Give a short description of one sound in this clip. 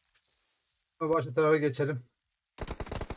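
A man speaks into a microphone with animation, close by.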